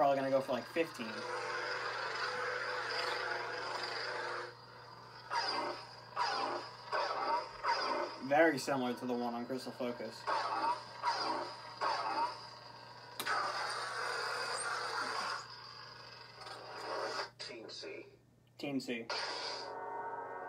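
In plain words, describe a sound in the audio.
A toy lightsaber hums and whooshes as it swings.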